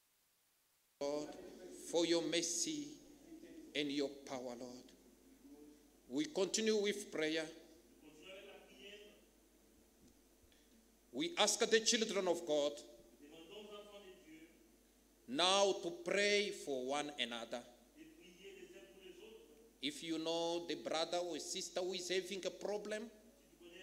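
A young man speaks with feeling at a microphone, with pauses, heard in an echoing hall.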